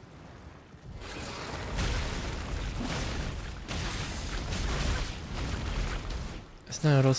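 A giant creature crashes heavily.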